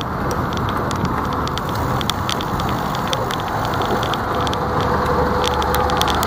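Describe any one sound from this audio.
A bus engine rumbles close ahead.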